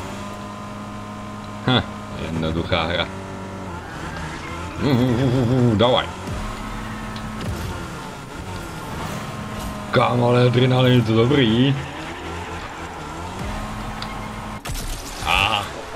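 A racing car's engine hums steadily.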